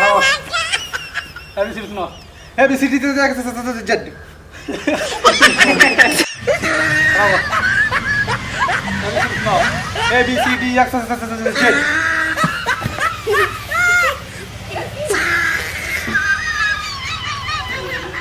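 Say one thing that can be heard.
Teenage boys talk and joke loudly outdoors.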